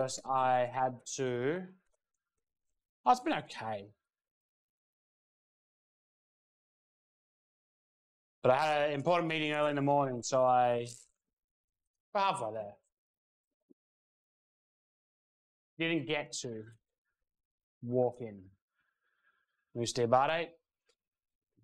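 A man speaks into a microphone in short, lively bursts with pauses between them.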